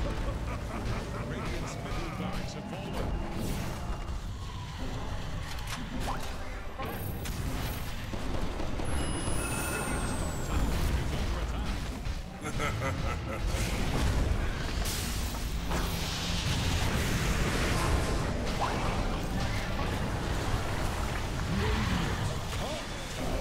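Game spell effects crackle and boom in a busy battle.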